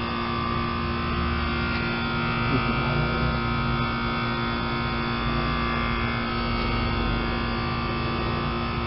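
An outdoor air conditioner fan hums and whirs steadily.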